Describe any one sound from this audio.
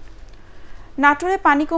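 A young woman reads out calmly through a microphone.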